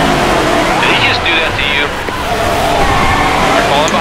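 Tyres screech as a race car spins out.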